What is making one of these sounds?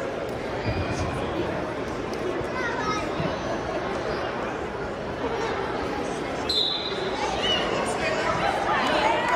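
A crowd of people murmurs and calls out in a large echoing hall.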